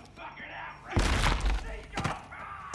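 A wooden door bangs and bursts open with a loud crash.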